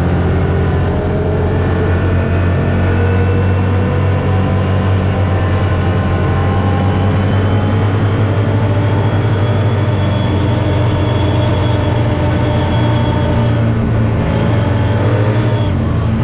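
A vehicle engine drones loudly and steadily.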